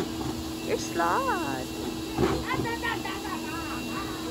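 A toddler babbles and squeals.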